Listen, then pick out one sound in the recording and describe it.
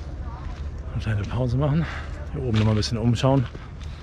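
A man speaks close up with animation.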